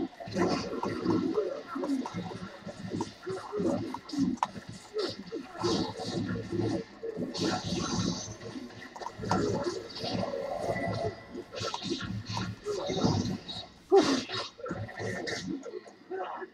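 Weapons clash in a fast fight.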